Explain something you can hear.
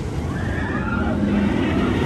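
Riders on a roller coaster scream in the distance.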